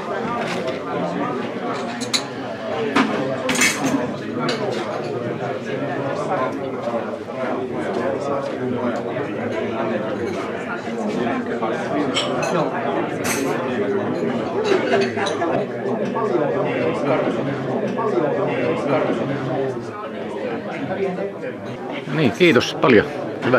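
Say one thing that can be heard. Cups and saucers clink now and then.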